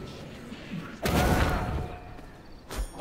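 A magical blast bursts loudly.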